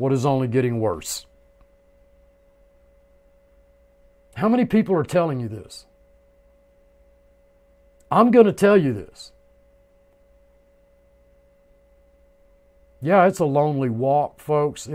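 An older man speaks calmly into a close microphone, in short bursts with pauses.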